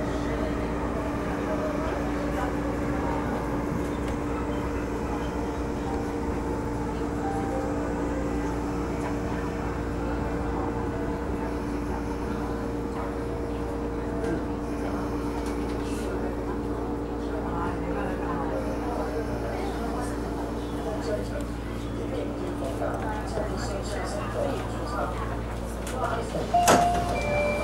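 A train rumbles and hums steadily as it rolls along the tracks.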